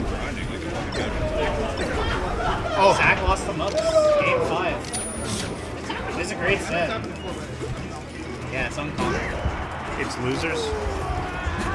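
Video game fighting effects whoosh and clash in quick bursts.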